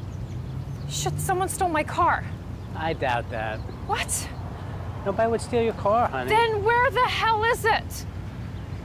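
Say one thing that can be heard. A man talks calmly outdoors.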